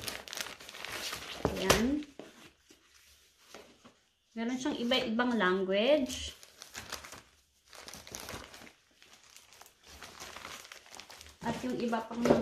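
Paper rustles as it is unfolded and handled.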